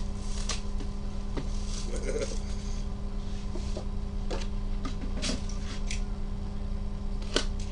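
Cardboard boxes knock and slide against each other.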